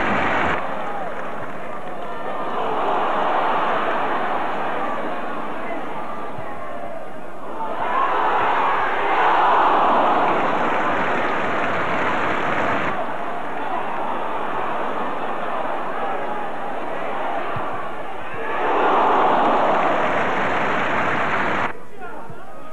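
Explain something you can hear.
A large crowd cheers and roars in a stadium, swelling in loud bursts.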